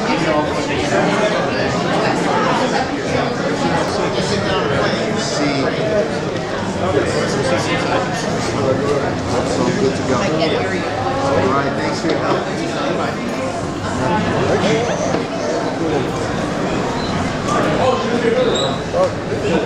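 A crowd of people chatter throughout in a busy room.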